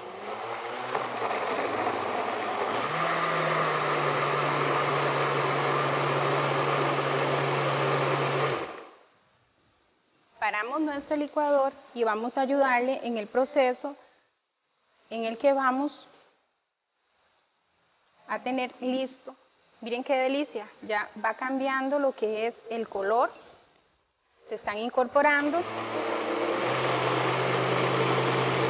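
A blender whirs loudly and steadily.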